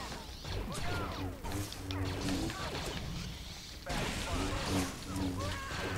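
A blaster fires in short bursts.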